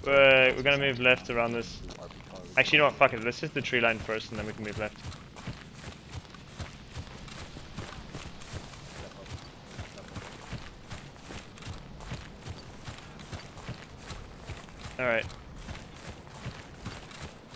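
Footsteps tread steadily through grass.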